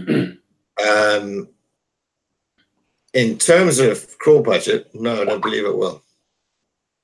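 An older man speaks calmly over an online call.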